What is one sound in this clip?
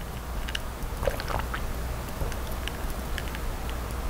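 A young woman gulps a drink.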